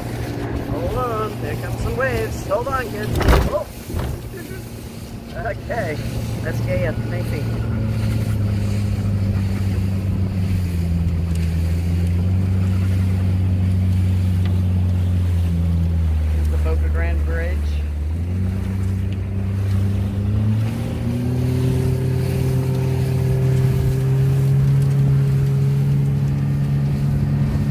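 A boat engine drones steadily, its pitch shifting now and then.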